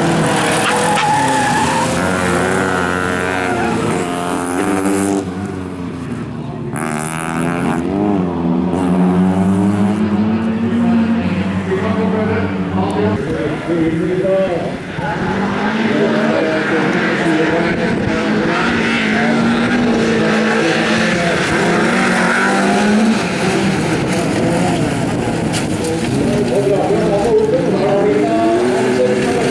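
Racing car engines roar and rev loudly.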